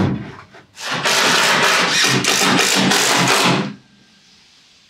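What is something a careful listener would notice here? A power tool whirs loudly, then stops.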